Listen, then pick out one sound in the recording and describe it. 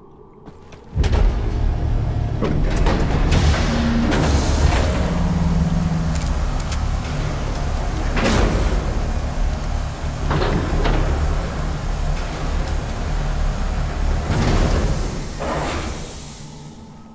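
Heavy guns fire in loud, rapid bursts with a deep roar.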